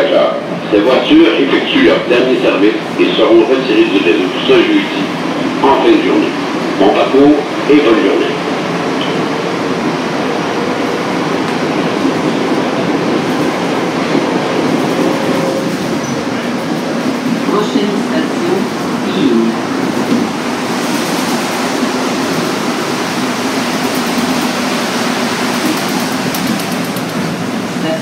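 A subway train rumbles and rattles steadily along its tracks.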